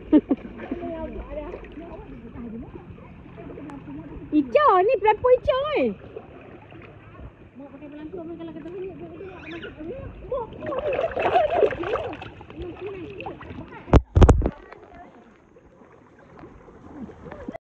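River water splashes and gurgles.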